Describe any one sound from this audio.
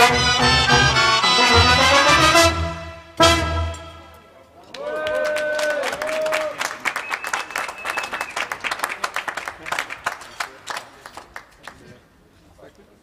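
A brass band plays a lively tune.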